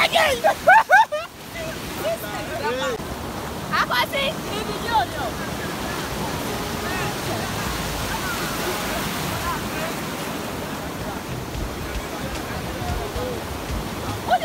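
Waves crash and wash onto the shore.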